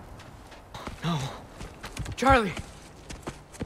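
A young boy shouts urgently.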